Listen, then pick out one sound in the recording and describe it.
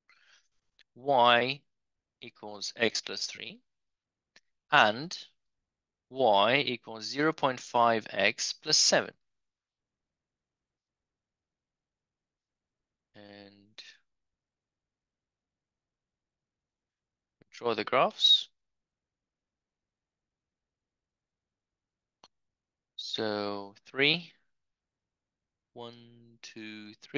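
A man explains calmly through a microphone, in short phrases with pauses.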